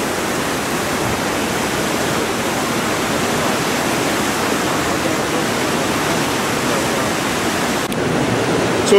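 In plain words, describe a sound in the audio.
River rapids roar and rush steadily.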